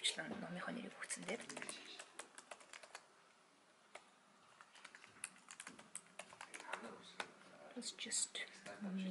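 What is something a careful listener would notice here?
Computer keys click in quick bursts.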